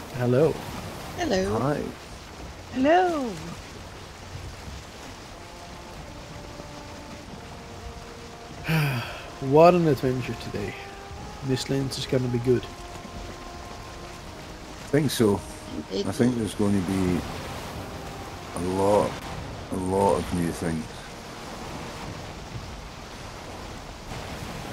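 A stormy wind blows steadily over the sea.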